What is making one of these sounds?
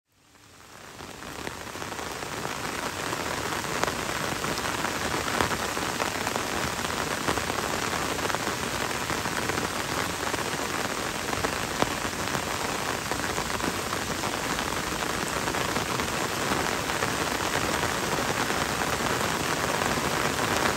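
Gentle rain patters on forest leaves and a wet road.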